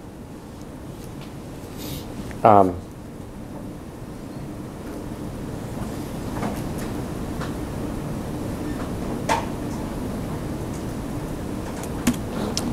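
A man types on a laptop keyboard.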